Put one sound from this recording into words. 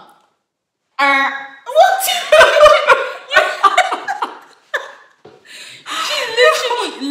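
Two young women laugh loudly together.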